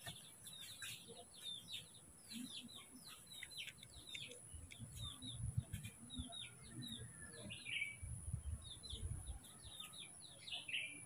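A baby monkey squeaks in short, high chirps.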